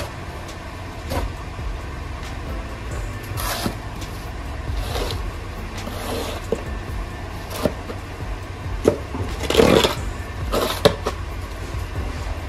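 A shovel scrapes and chops at packed snow.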